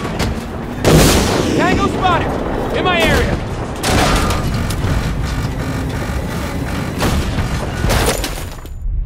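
A tank cannon fires with loud booming blasts.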